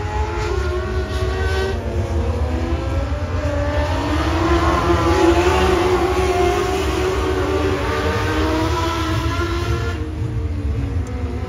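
Race car engines roar loudly, rising and falling outdoors.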